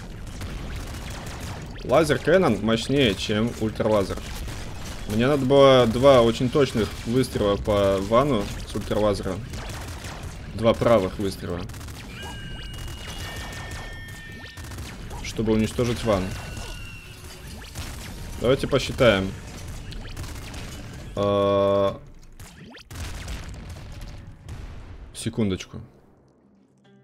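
Video game weapons fire with rapid electronic zaps and blasts.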